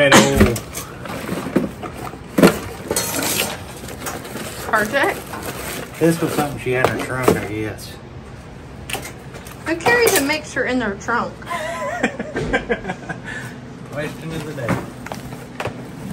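Plastic items rattle and clatter as they are moved about.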